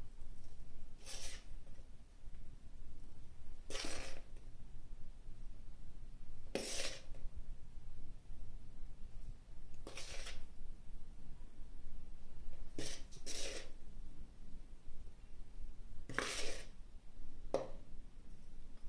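A spoon scoops flour, scraping against a metal pot.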